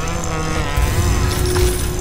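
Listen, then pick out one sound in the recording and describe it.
Electricity crackles and sparks from a hand.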